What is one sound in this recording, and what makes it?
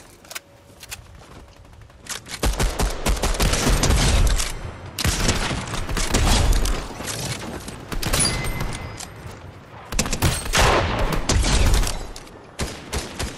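Gunshots crack in quick bursts and single loud shots.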